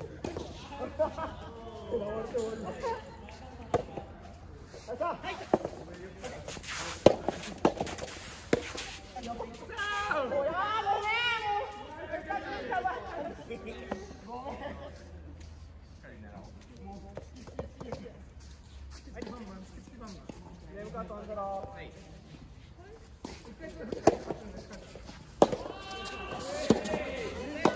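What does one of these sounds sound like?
Tennis balls are struck with rackets, in sharp pops.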